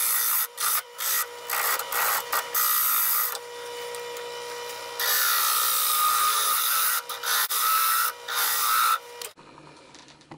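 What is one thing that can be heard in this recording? A chisel scrapes loudly against spinning wood on a lathe.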